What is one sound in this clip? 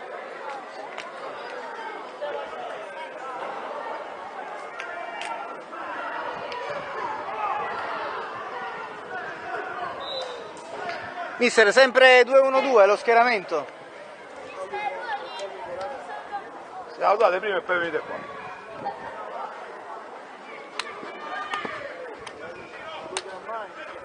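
A crowd of children and adults chatter outdoors.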